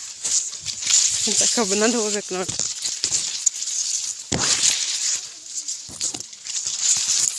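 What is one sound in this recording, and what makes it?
Tall grass rustles and swishes close by as someone pushes through it.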